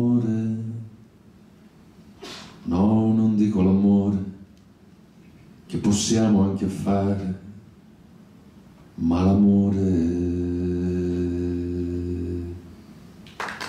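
A middle-aged man speaks expressively into a microphone, with long pauses.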